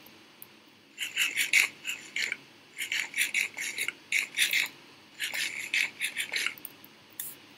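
Food is munched in quick, crunchy bites.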